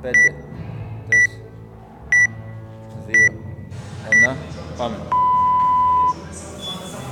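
A rowing machine's monitor beeps a countdown, then gives one long beep.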